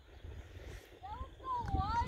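A young woman shouts from across the field.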